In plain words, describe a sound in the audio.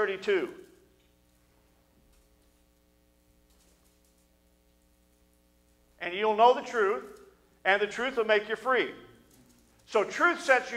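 A man speaks with emphasis into a microphone, with long pauses.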